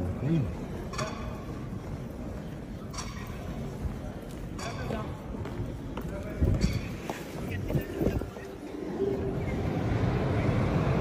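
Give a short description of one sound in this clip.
Many feet shuffle and hurry across the floor.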